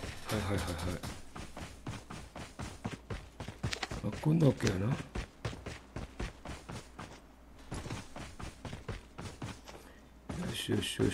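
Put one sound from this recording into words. Footsteps thud quickly and steadily on the ground.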